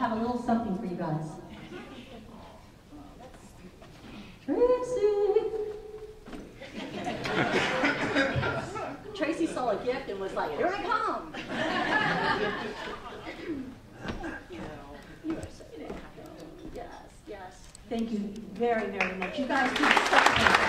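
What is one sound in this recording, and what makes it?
A woman speaks calmly into a microphone over a loudspeaker.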